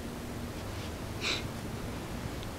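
Clothing rustles as a body shifts on the floor.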